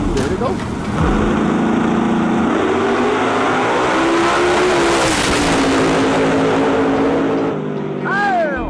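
A race car roars off at full throttle and speeds away.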